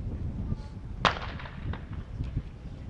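A shotgun fires once nearby, with the bang echoing off across open ground.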